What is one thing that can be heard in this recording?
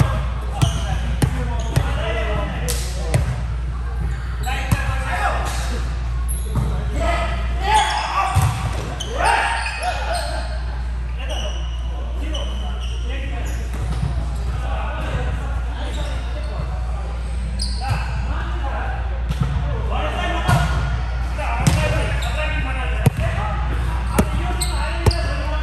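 A volleyball thumps off players' arms and hands, echoing in a large hall.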